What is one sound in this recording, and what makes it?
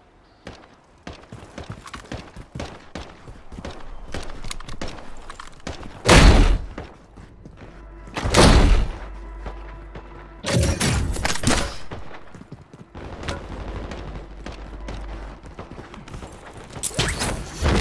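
Footsteps run quickly over hard stone.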